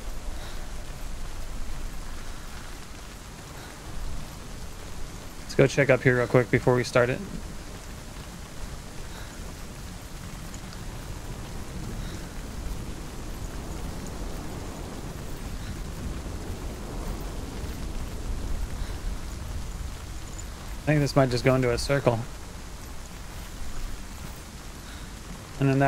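Rain falls steadily outdoors.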